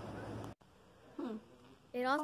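A teenage girl speaks into a phone.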